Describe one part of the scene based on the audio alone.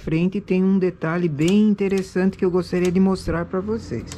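Metal needles click softly as a hand tool moves them on a knitting machine.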